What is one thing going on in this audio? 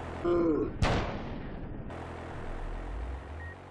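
A loud explosion booms and rumbles away.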